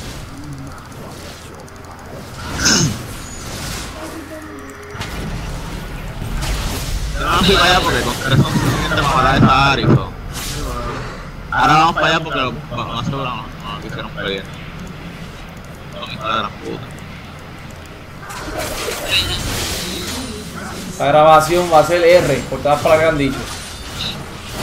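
Magic blasts and weapon hits crackle and clash in quick bursts.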